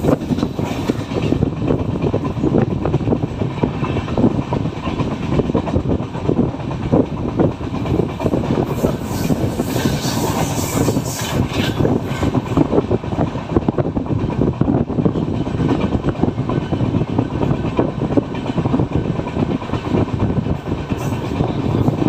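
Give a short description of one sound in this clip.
Wind rushes past an open train door.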